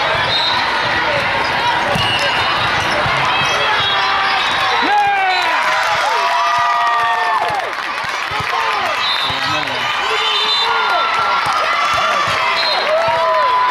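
A volleyball thuds as it is hit.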